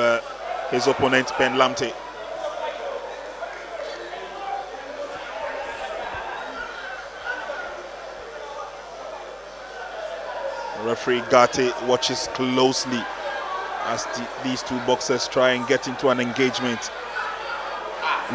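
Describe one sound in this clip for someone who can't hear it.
A crowd murmurs and calls out in a large hall.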